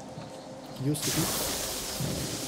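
A magic spell crackles and hisses.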